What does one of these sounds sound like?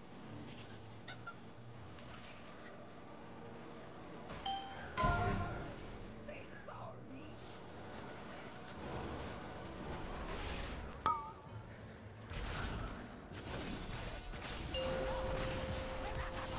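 Game spell effects whoosh and crackle in bursts.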